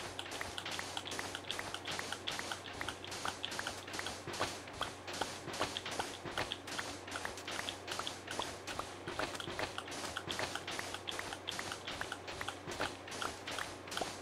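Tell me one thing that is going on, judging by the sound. A shovel digs rapidly into sand in quick, even, crunching strokes.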